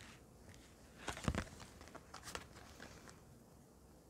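Playing cards slap and slide softly onto a table.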